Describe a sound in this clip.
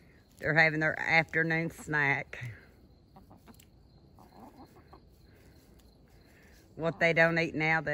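A hen clucks nearby.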